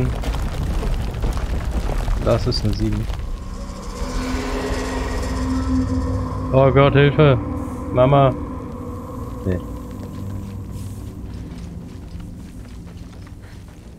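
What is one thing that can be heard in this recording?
A low rumbling hum echoes.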